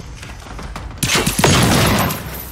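A loud explosion booms close by.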